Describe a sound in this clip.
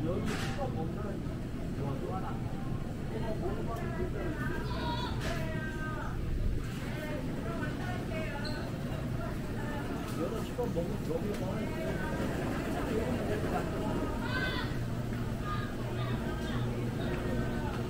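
Refrigerated display cases hum steadily.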